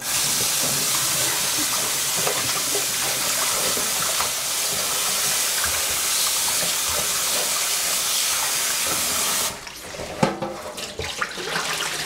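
Gloved hands rub and squelch food in water.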